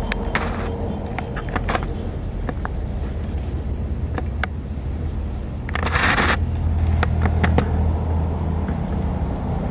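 A cloth bag rustles against grass.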